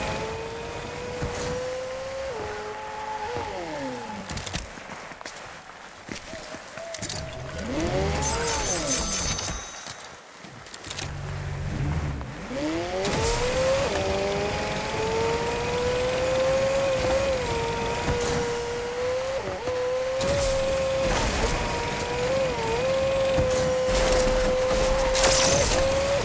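A car engine hums steadily and whines higher as it speeds up.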